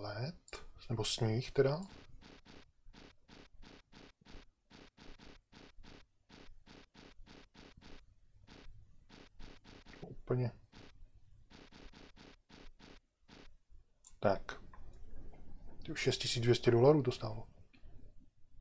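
An older man talks calmly through a microphone.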